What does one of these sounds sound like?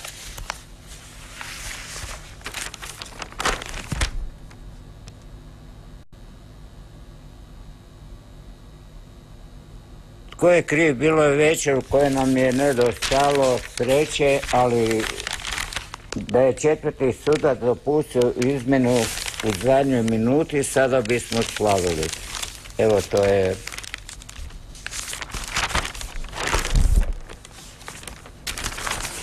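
Newspaper pages rustle and crackle as they are handled.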